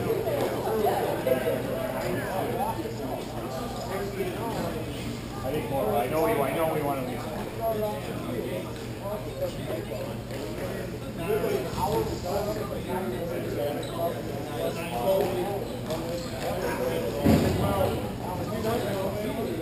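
Skates roll and scrape across a hard floor in a large echoing hall.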